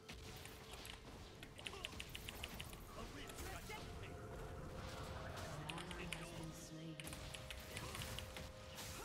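Magic spell effects whoosh and crackle in a game.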